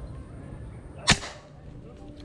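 A break-action gun clicks shut.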